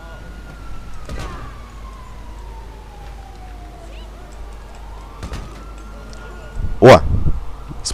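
A gun fires sharp shots.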